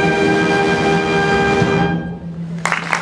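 A large wind band holds a final loud chord that rings out in an echoing hall.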